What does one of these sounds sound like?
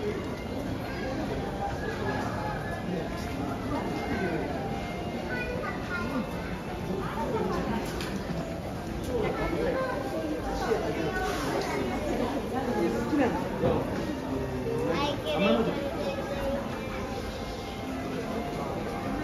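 A crowd of men, women and children chatters all around.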